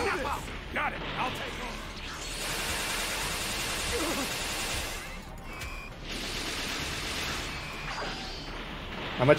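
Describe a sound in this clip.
Energy blasts whoosh and burst in a video game.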